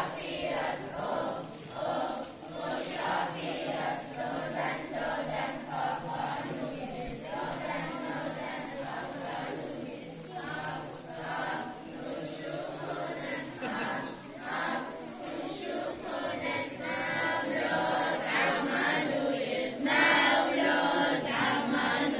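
A crowd of children and adults chatters outdoors.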